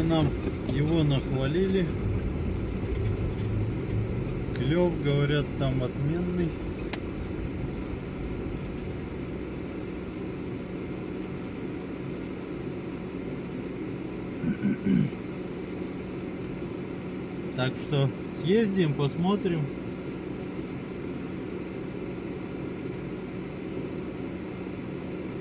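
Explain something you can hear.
A car engine hums steadily inside a vehicle.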